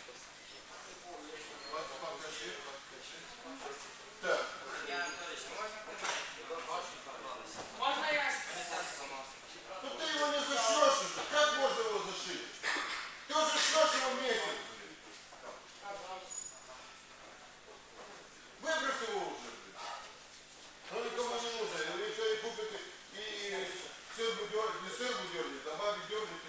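Bare feet shuffle and thud on mats.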